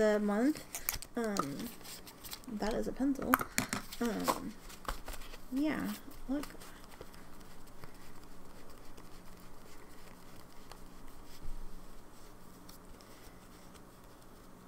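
Stiff cards rustle and click as they are shuffled by hand.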